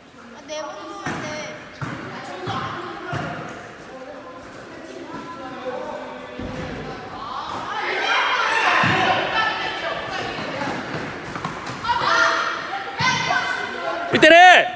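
A basketball bounces on a hard court floor in an echoing gym.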